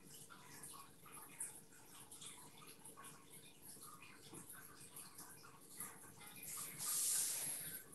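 A brush dabs softly on paper.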